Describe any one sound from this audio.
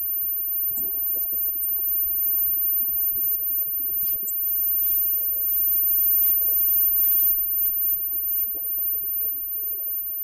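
Cymbals crash and hiss from a drum kit.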